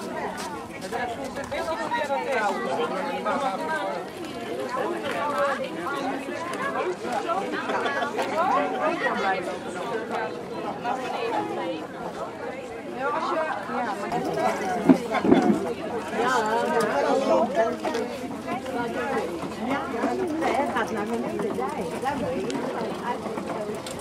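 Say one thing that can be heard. A crowd of adults chatters nearby outdoors.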